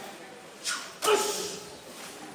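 Wrestlers' bodies collide with a heavy slap.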